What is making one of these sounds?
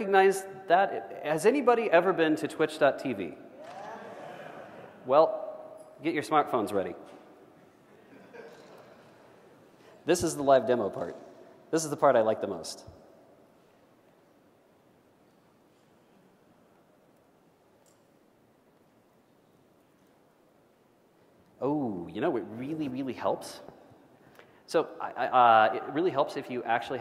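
A man speaks through a microphone in a large echoing hall, pausing now and then.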